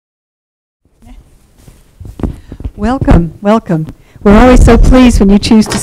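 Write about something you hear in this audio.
A woman speaks with animation through a microphone.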